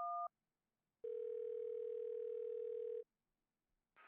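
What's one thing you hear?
A phone rings on the line.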